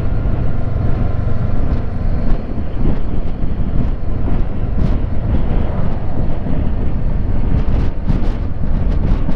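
Wind roars loudly past the microphone of a moving motorcycle.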